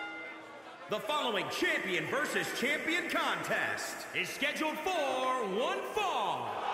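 A man announces through a microphone, echoing in a large arena.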